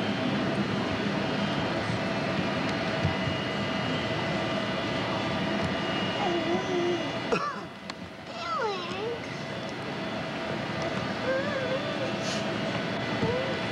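A jet aircraft's engines roar steadily nearby.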